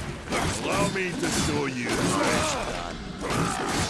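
Heavy metal weapons clash and strike.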